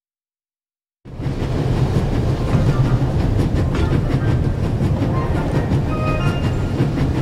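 A train rumbles and rattles along the tracks.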